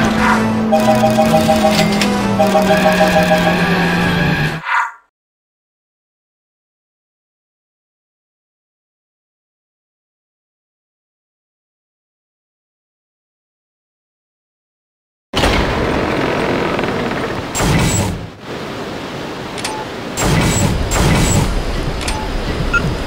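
Upbeat video game music plays.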